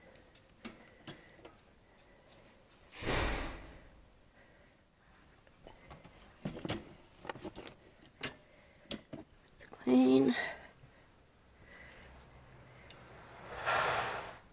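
A wire cage rattles and clanks close by.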